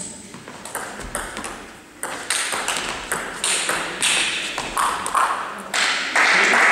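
A table tennis ball clicks back and forth between paddles and the table in a quick rally.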